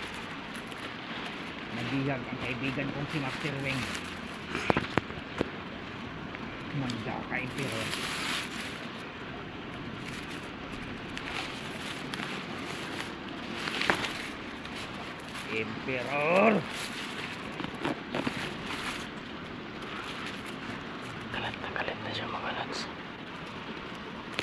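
Wind rustles through tall grass and leaves outdoors.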